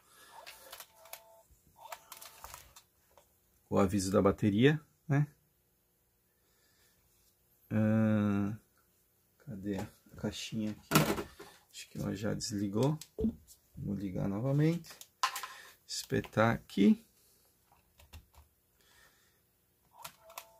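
Buttons on a small device click as a finger presses them.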